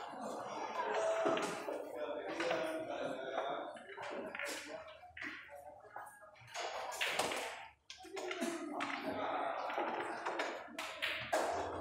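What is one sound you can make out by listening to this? Pool balls clack together as they are gathered and racked.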